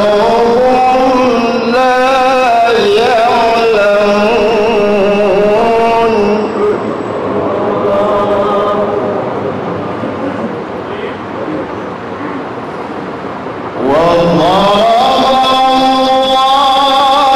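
A young man chants melodically into a microphone, heard through loudspeakers with a light echo.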